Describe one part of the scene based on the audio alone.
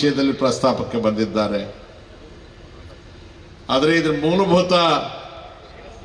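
An elderly man speaks forcefully into a microphone over a loudspeaker.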